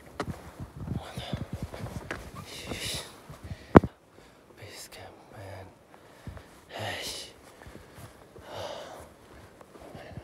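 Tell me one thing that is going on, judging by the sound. A young man breathes heavily close by.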